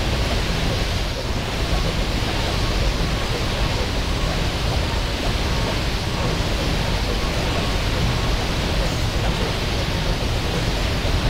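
Game battle effects clash and crackle with a dense, steady roar.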